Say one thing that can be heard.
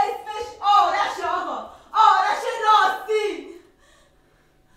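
A man declaims loudly and dramatically, his voice carrying in a hall.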